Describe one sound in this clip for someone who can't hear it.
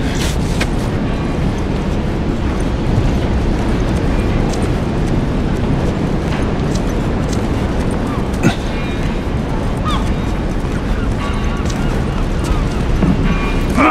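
Footsteps shuffle softly on concrete.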